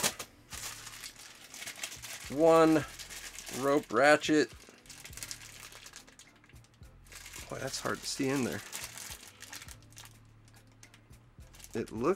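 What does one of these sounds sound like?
A plastic bag crinkles and rustles in a hand, close by.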